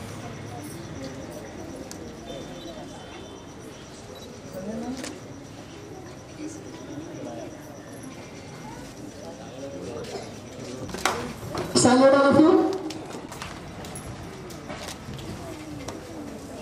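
A crowd of children and adults chatter nearby outdoors.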